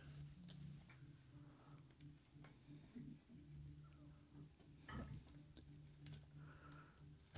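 Wires rustle and click softly as fingers move them about.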